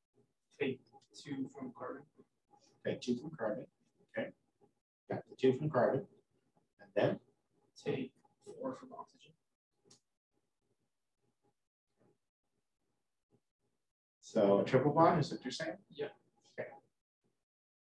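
A man speaks calmly into a microphone, explaining in pauses.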